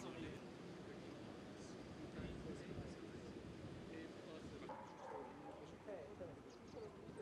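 Young men talk casually nearby outdoors.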